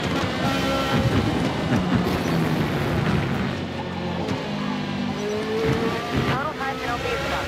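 Tyres rumble over rough ground and kerbs.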